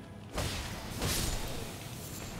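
A sword slashes through the air.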